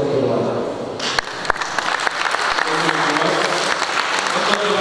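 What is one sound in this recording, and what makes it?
A group of men applaud in a large echoing hall.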